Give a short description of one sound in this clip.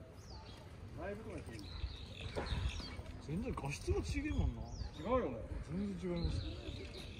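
Women chat quietly nearby while walking past.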